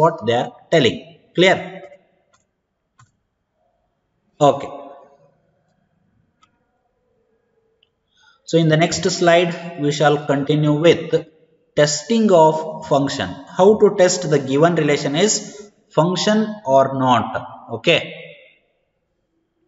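A young man speaks calmly and explains, close to a microphone.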